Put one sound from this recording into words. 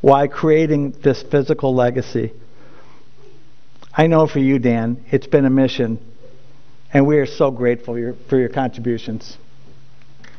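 An elderly man speaks calmly into a microphone, in pauses.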